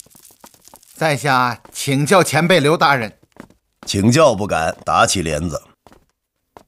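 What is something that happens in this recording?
A man speaks politely in a clear voice.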